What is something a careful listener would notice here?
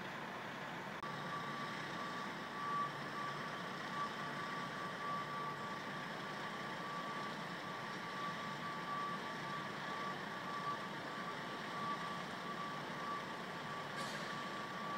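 A large truck's engine runs with a steady whine close by.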